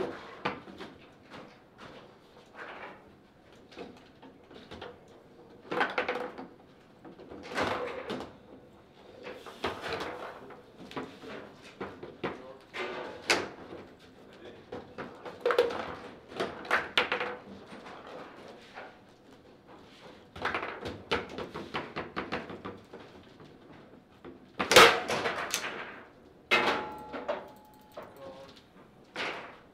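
A ball clacks and knocks against the rods and walls of a table football game.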